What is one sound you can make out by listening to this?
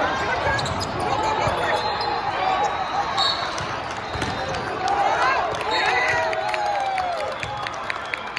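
Young players shout to each other during a rally.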